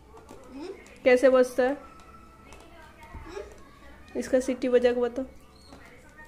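A small girl speaks in short, sing-song bursts close by.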